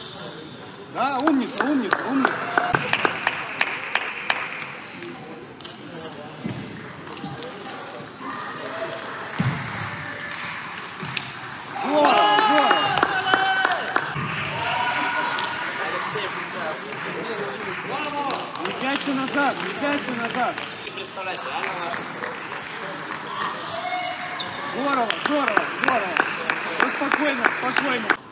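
A ping-pong ball clicks back and forth between paddles and the table in a large echoing hall.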